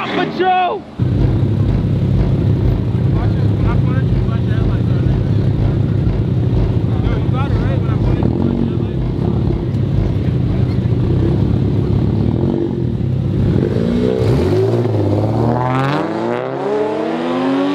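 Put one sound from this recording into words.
Car engines idle with a deep, pulsing rumble close by.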